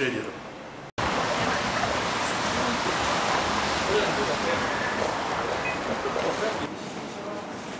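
Footsteps and busy street noise hum outdoors.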